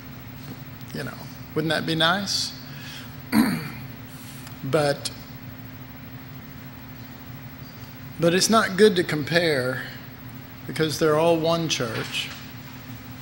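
A middle-aged man speaks calmly into a microphone, in short phrases with pauses.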